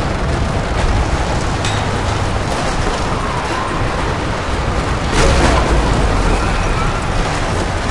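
A wooden crank creaks as it is turned.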